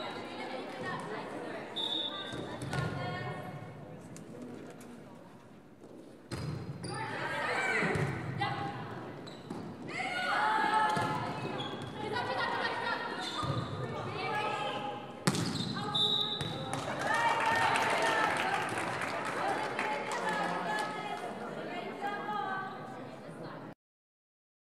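Young women shout and cheer in an echoing gym.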